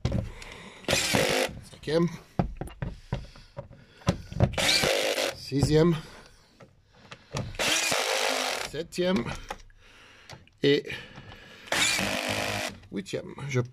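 A power drill whirs in short bursts, driving a bolt.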